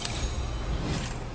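A bright game chime rings out briefly.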